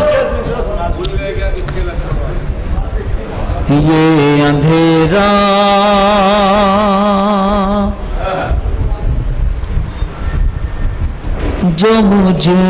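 A man recites and sings in a long, drawn-out voice through a microphone and loudspeakers, with an echo around him.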